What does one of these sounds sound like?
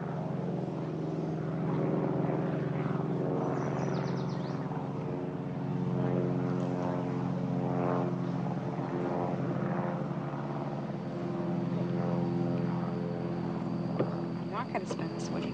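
A small propeller plane drones steadily overhead.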